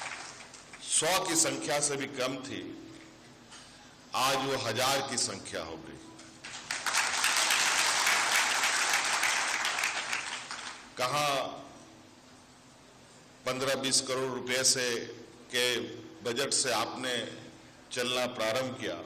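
A man speaks forcefully through a microphone, with echo in a large hall.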